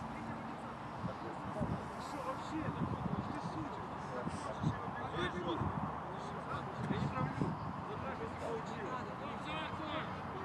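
Men shout and call out to each other at a distance.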